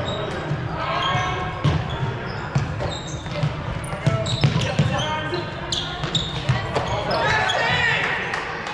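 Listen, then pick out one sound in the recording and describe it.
Balls thud on the floor and against players.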